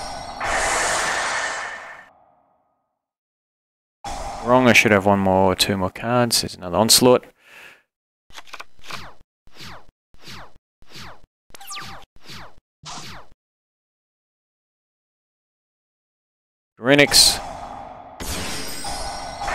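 Electronic game sound effects whoosh and chime.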